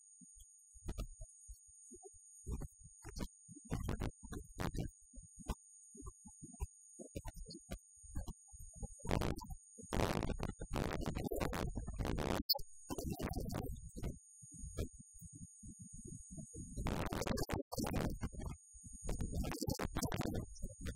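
Small electric clippers buzz through a dog's fur.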